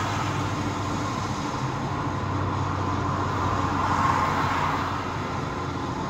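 A large truck rumbles past close by.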